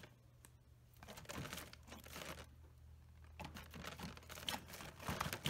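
A rabbit rustles and tugs at leaves.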